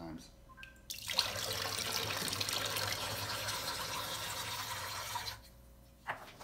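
Water runs from a tap and splashes into a metal sink.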